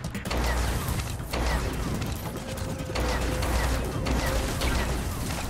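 A spacecraft's engine roars steadily.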